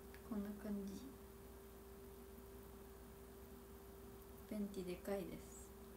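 A young woman speaks softly and casually into a nearby microphone, in short bursts.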